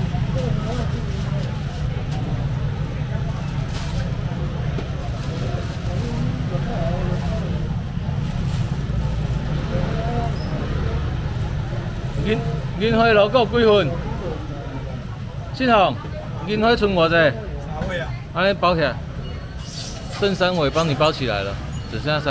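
A busy market crowd chatters in the background.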